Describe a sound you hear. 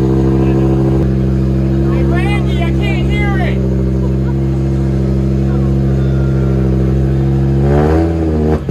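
A rally car engine idles with a deep, steady rumble.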